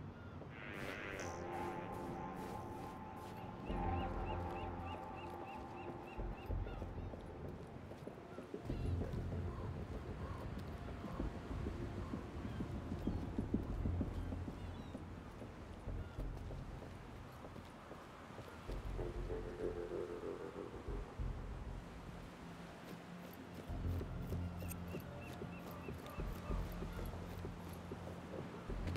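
Water laps and sloshes against floating ice.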